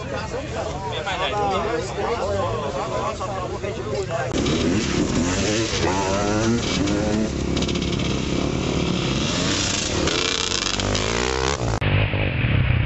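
Several motorcycle engines idle and rev nearby.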